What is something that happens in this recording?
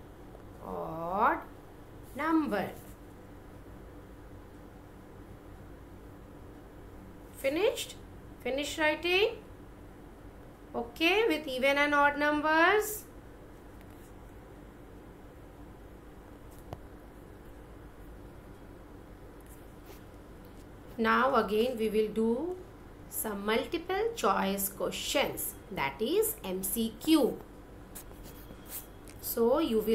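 A woman speaks calmly and clearly through an online call, with pauses between phrases.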